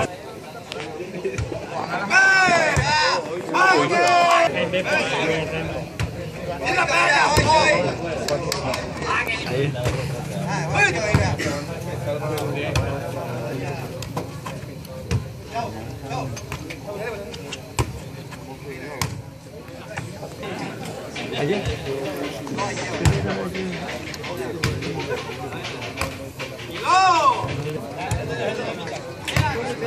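A large crowd of young men chatters and cheers outdoors.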